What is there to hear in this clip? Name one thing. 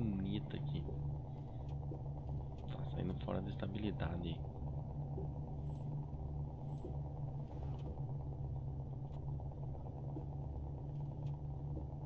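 A truck engine hums steadily and low.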